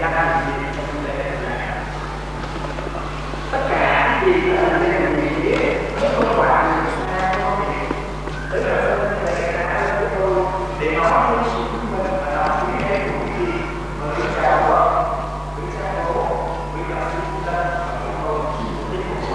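A man speaks steadily through a loudspeaker in a large echoing hall.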